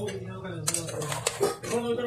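A spoon stirs raw mutton pieces in a metal pot.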